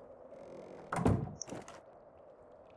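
A wooden door bangs shut.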